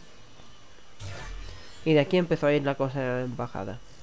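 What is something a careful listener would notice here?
Magic spells and weapon hits crackle and whoosh in a battle.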